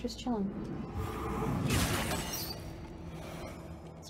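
A blade swings and clashes in a fight.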